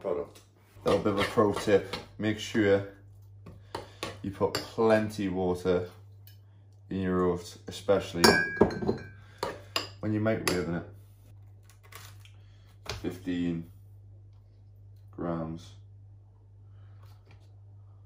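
A spoon scrapes and clinks in a bowl.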